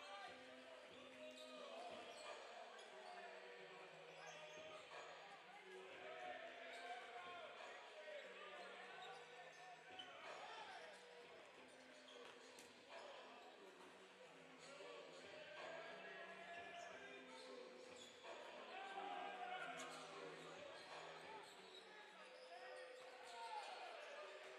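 Players call out and chatter across the gym.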